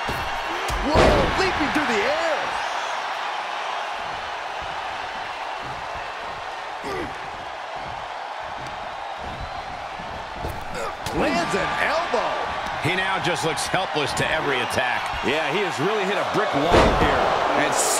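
A body slams down hard onto a wrestling mat with a heavy thud.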